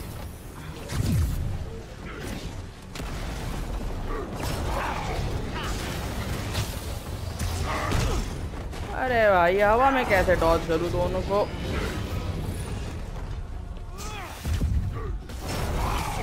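Heavy blows and thuds land in a fast fight.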